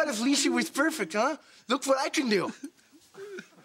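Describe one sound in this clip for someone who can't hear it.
A young man talks loudly with animation.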